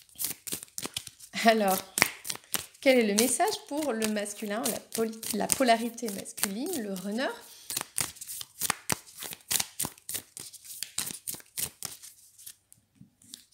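Playing cards are shuffled with quick, rapid flicking clicks.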